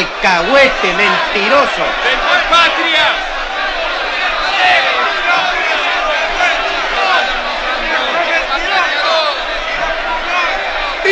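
A crowd of men shout and clamour over one another in a large hall.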